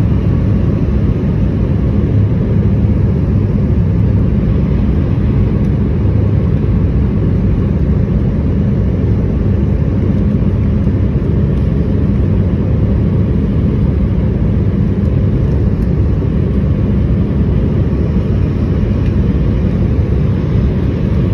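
Jet engines roar steadily with a deep, loud rumble inside an airliner cabin.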